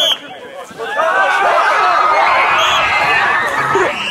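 A crowd of teenage boys shouts and cheers outdoors.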